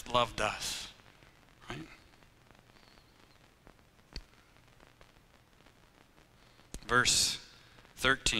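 A man speaks calmly through a microphone in an echoing room, with long pauses.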